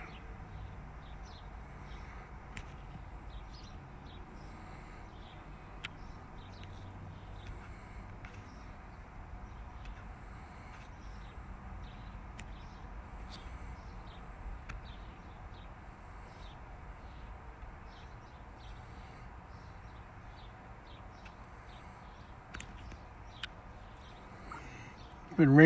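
Traffic hums steadily far off on a highway.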